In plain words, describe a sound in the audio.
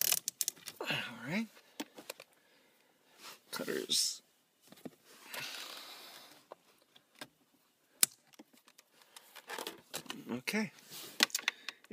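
Wires rattle and click as hands handle them close by.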